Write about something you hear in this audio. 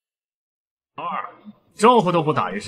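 A young man speaks mockingly close by.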